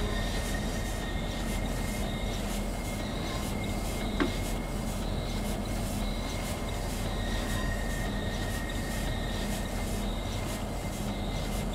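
Rain patters on a train windscreen.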